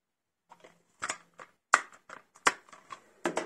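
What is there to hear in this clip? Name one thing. Plastic clicks and rattles as a disc case is handled.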